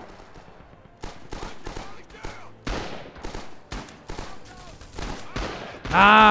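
Gunfire and explosions crackle in bursts.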